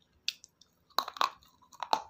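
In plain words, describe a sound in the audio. A woman bites and crunches something crisp close to a microphone.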